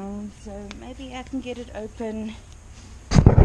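An older woman speaks nearby in a calm voice.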